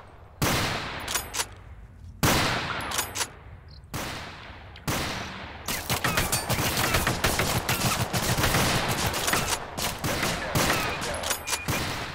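A rifle bolt clacks as it is worked back and forth.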